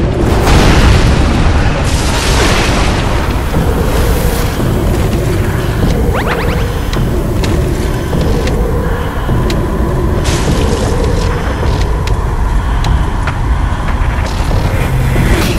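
Steel blades clash and clang in a fierce sword fight.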